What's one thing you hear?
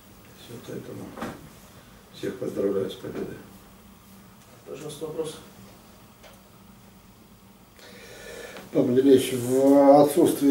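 A middle-aged man speaks calmly into microphones, with pauses.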